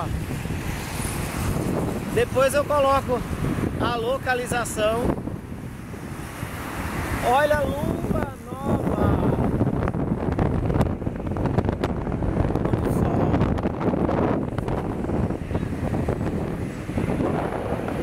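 Traffic rumbles steadily on a road below.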